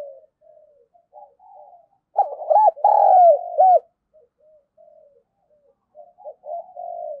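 A dove coos in soft, low, repeated calls close by.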